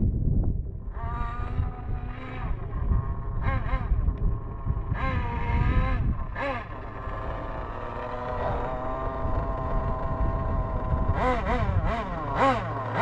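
A small electric motor whines, revving up and down as a toy car speeds by.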